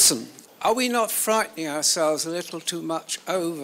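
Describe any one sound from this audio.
A man asks a question through a microphone.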